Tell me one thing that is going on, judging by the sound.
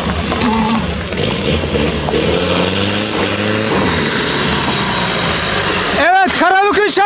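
A truck engine roars loudly as it drives close by.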